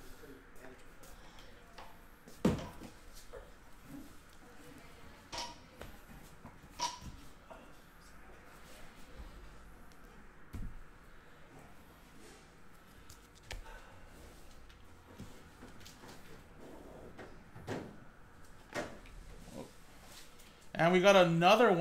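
Cards rustle and click as they are shuffled by hand.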